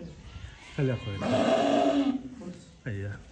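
A sheep bleats loudly nearby.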